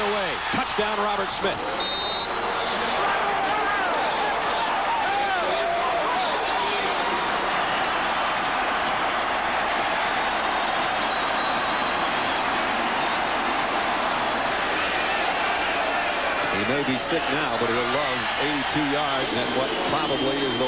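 A large crowd cheers loudly in a big stadium.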